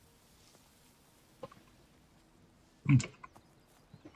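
A wooden shed door swings open.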